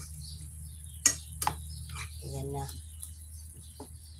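A metal fork clinks against a frying pan.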